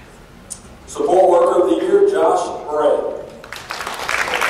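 A man speaks through a loudspeaker in a large echoing hall.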